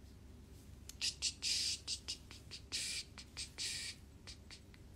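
A young man makes short blowing sounds through pursed lips, close by.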